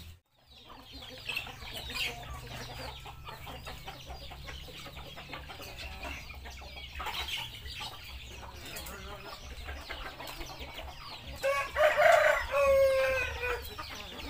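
Chickens cluck and peck nearby.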